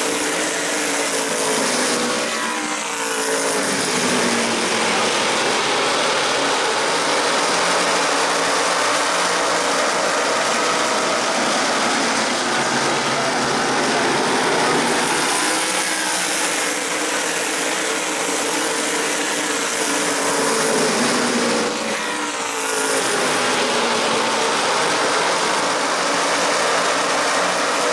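Race car engines roar loudly as cars speed past.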